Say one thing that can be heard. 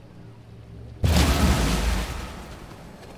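A loud explosive blast booms and slowly fades.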